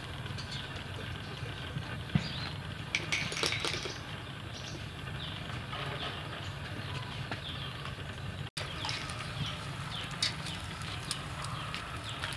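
Raw fish thud softly onto a metal grill.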